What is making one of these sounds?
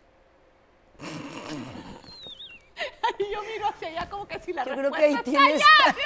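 Two women burst into loud laughter.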